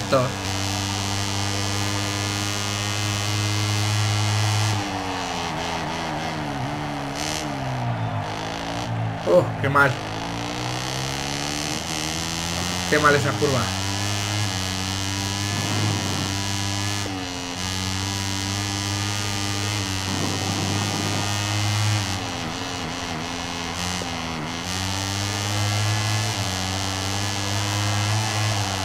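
A motorcycle engine drones and whines, rising and falling in pitch as it speeds up and slows down.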